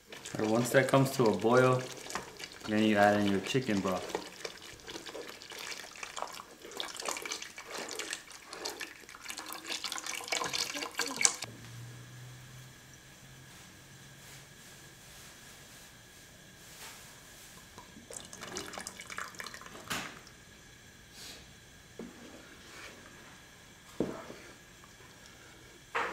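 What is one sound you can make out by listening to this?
A wooden spoon stirs and scrapes in a pot.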